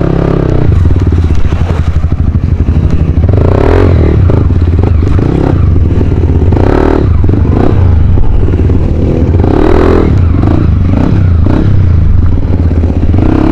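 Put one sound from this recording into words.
A dirt bike engine idles with a low, steady rumble close by.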